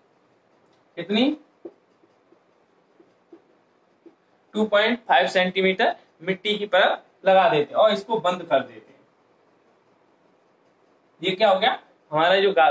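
A man speaks calmly and clearly, close by, explaining in short bursts.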